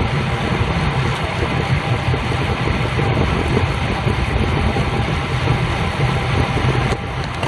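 Wind rushes loudly and steadily.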